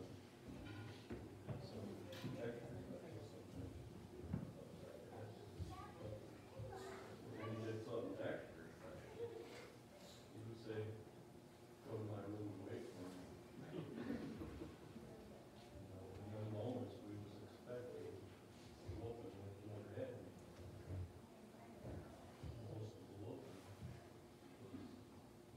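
A man speaks calmly through a microphone and loudspeakers in a large echoing hall.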